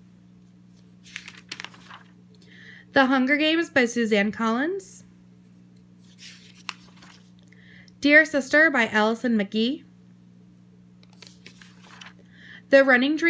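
Paper pages rustle as they are turned over in a binder.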